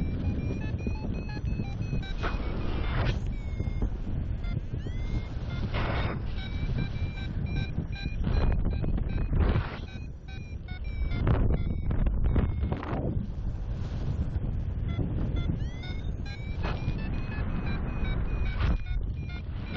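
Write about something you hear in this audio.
Wind rushes loudly and steadily past, with strong gusts.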